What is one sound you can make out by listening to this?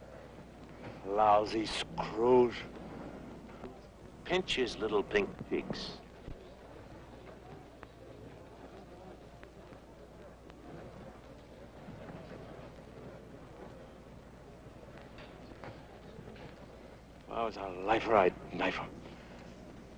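A middle-aged man speaks gruffly and with force, close by.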